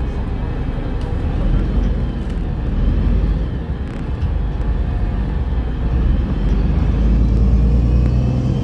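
Traffic roars steadily past on a busy road.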